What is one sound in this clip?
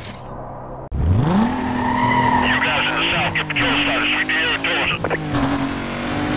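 A car engine roars and revs as it speeds up.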